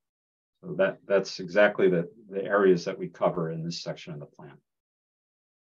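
A man speaks calmly into a microphone, heard as over an online call.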